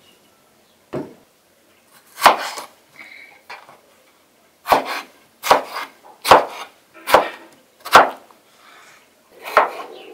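A knife slices through tomatoes onto a wooden cutting board.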